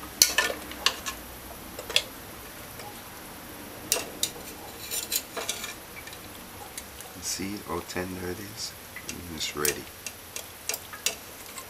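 Metal utensils clink and scrape against a metal pot.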